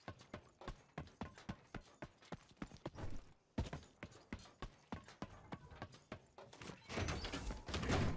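Footsteps thump quickly on metal stairs.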